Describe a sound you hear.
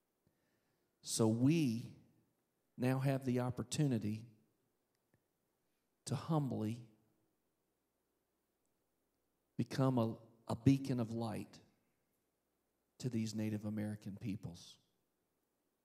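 A man speaks slowly and calmly through a microphone, with pauses, in a large hall.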